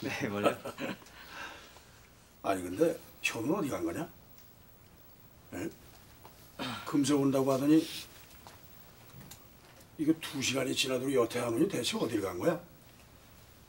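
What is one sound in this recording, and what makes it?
A middle-aged man speaks firmly and calmly nearby.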